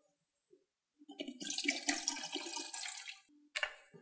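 A middle-aged man pours water into a kettle.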